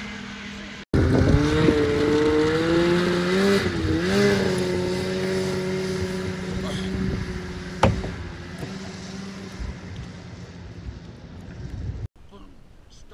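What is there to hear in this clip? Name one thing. A snowmobile engine revs as the snowmobile speeds away.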